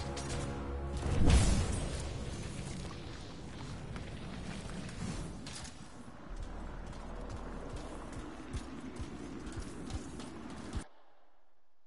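A jet suit's thrusters roar and whoosh.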